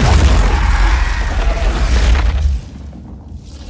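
A blast of fire roars loudly.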